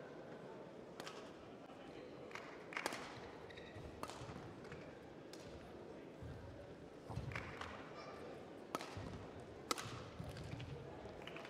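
Rackets sharply strike a shuttlecock back and forth in a large echoing hall.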